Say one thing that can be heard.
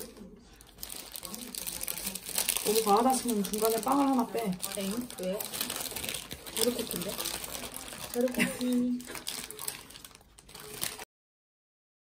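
A paper food wrapper crinkles as hands unfold it.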